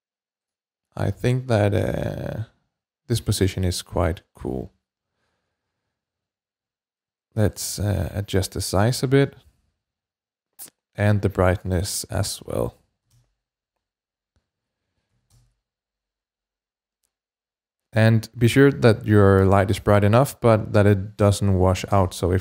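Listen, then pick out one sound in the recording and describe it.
A young man speaks calmly into a close microphone, in short bursts with pauses.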